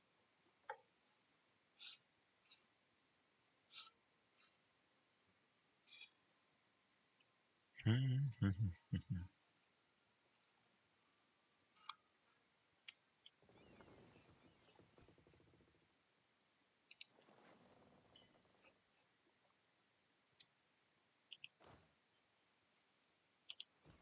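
Soft interface clicks sound as menus are opened and closed.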